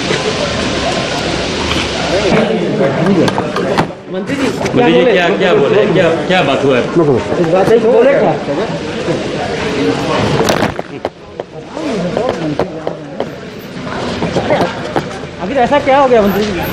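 Several men talk over one another nearby.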